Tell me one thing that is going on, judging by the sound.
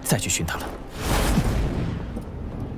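A whoosh rushes past.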